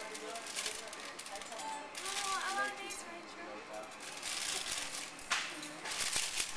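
A plastic bag rustles and crinkles as it is opened.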